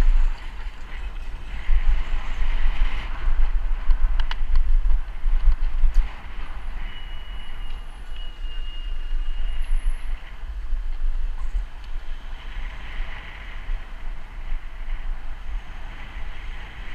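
Tyres roll on rough tarmac with a steady hiss.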